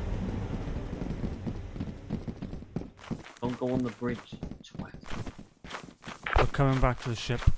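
Footsteps walk on hard ground.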